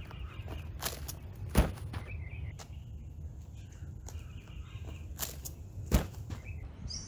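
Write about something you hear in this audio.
Shoes thud and scuff on a fallen log.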